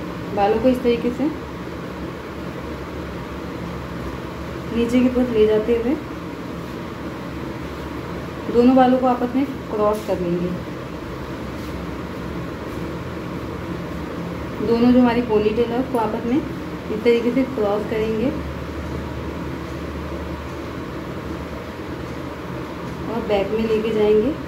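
A young woman speaks in short bursts close by.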